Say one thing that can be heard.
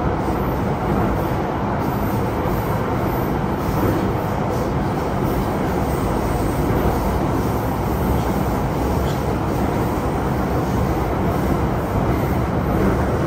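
A subway train rumbles loudly along the track.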